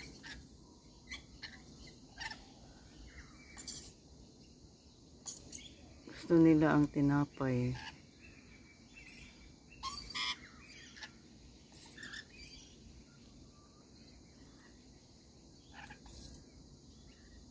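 Lorikeets chirp and screech in short, high bursts.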